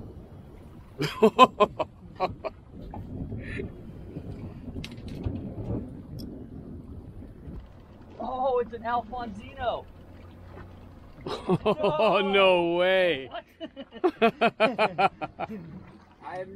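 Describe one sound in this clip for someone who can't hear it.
A fishing reel clicks as line winds in.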